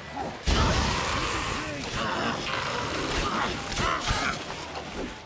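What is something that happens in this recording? A burst of fire roars and crackles.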